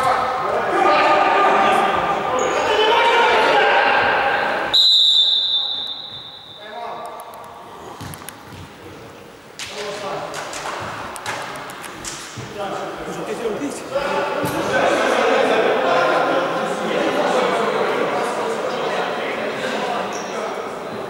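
A ball is kicked with a thud.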